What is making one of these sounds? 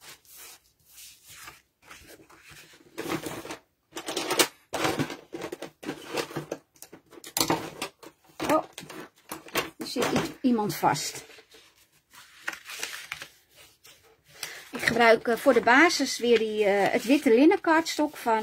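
Paper rustles as a sheet is handled and unfolded.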